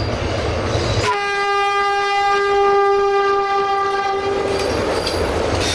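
A train horn sounds a long, steady blast.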